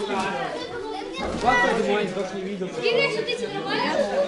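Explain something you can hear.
A boy's feet thud onto a mat after a vault.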